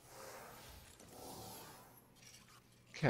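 Energy beams hum and crackle.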